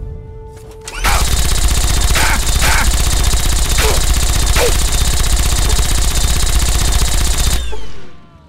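A laser gun fires in a rapid, steady stream of buzzing crackles.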